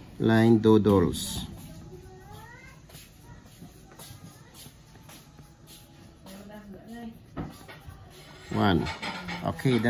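A pencil writes on paper.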